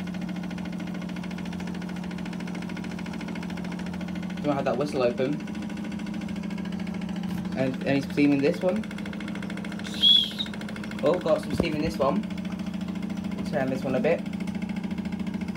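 Several model steam engines run, their flywheels spinning with a fast, even chuffing and whirring.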